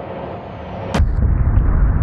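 A bus slams into a metal bar with a loud bang.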